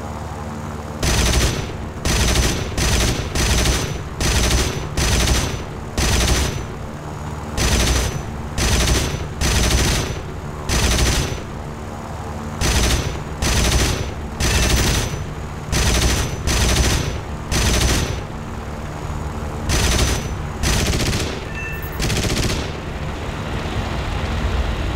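A fighter plane's machine guns fire in short bursts.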